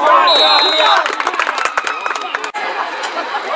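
A crowd of spectators claps.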